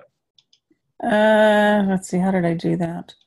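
A middle-aged woman speaks through an online call.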